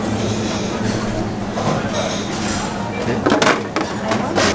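Plastic wrap crinkles around a cake slice.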